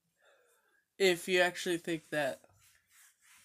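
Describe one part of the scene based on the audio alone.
A young man speaks close by, with animation.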